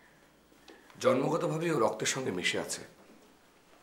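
A man speaks with feeling, close by.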